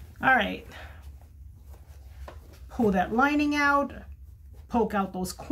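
Fabric rustles softly as it is folded and smoothed.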